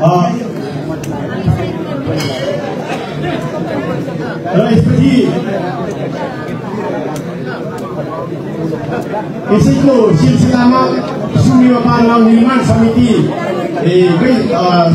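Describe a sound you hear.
A crowd of people murmurs and chatters in the background.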